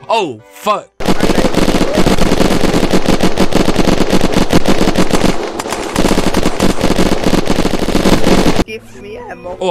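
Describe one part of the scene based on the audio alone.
Rapid gunfire rattles loudly and without pause.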